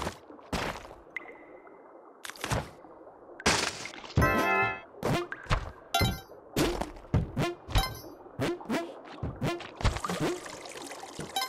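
Video game sound effects thump and chime in quick bursts.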